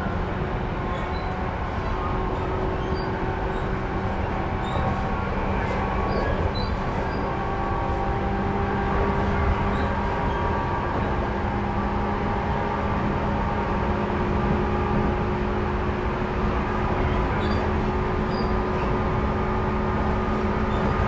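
An electric train hums steadily close by.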